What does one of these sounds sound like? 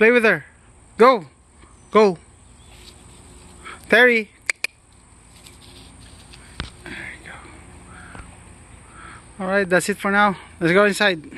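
A puppy whines in short, high, rising and falling cries.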